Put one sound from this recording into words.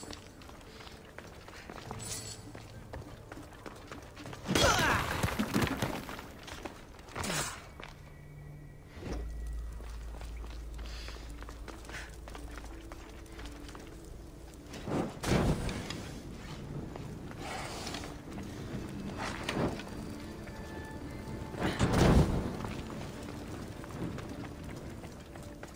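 A torch flame crackles.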